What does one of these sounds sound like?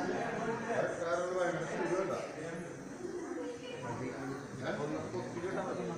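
Several men talk nearby, in a loose murmur of voices.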